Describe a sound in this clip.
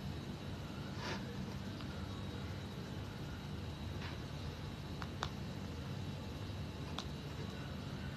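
Fingernails tap lightly on a phone.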